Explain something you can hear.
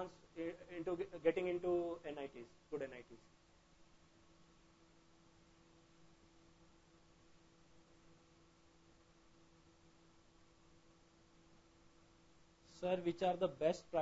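A man speaks calmly and clearly into a close microphone, pausing for a long stretch.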